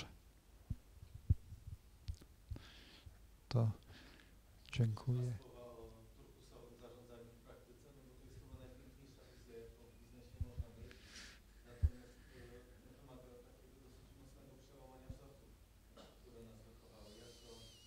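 An elderly man speaks calmly into a microphone, heard through a loudspeaker in a room with some echo.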